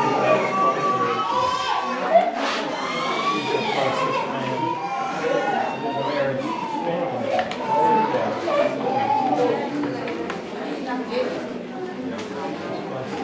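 Several people murmur and pray together.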